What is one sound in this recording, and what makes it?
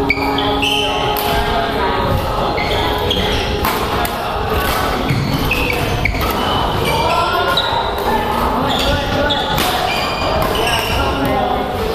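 Badminton rackets strike shuttlecocks back and forth in a large echoing hall.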